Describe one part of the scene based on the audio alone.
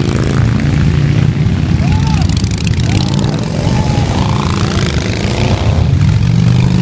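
Motorcycle engines rev and roar up close.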